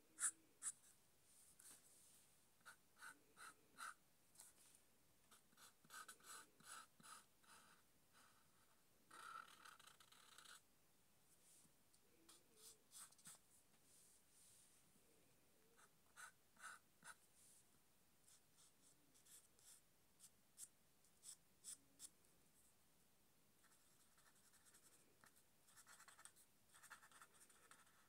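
A marker squeaks and scratches softly on paper in short strokes.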